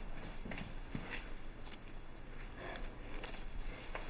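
Cloth rustles as a pillow is adjusted.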